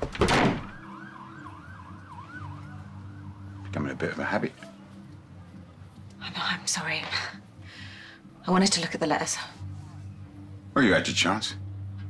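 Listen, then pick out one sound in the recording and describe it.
A woman speaks with emotion nearby.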